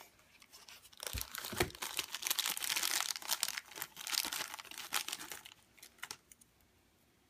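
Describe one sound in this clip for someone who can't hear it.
Plastic wrapping crinkles and rustles as hands pull it off.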